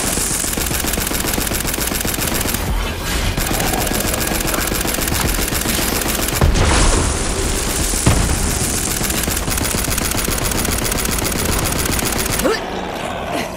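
A gun fires rapid bursts of shots.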